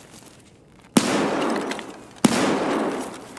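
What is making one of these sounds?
A door is kicked open with a loud bang.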